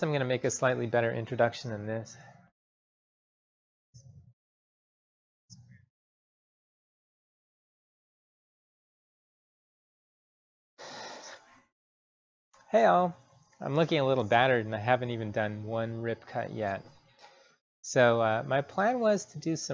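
A man talks calmly and close by, with pauses.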